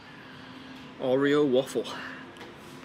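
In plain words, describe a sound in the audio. A young man lets out a loud, wavering exclamation close by.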